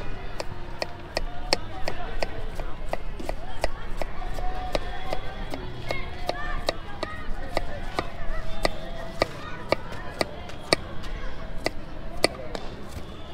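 A knife chops quickly and steadily on a wooden board.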